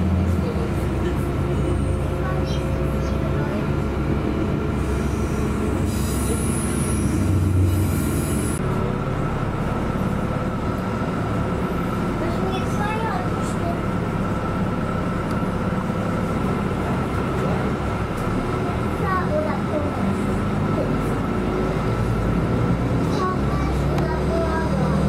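A train rumbles and rattles along the tracks.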